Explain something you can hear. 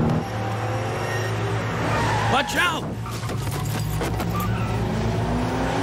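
A car engine roars as it speeds closer.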